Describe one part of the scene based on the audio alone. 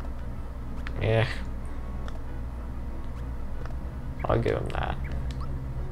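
A game menu beeps as options are picked.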